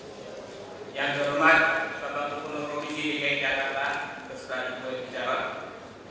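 A middle-aged man reads out formally into a microphone in a large echoing hall.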